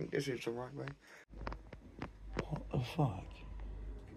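A young man talks close by, with animation.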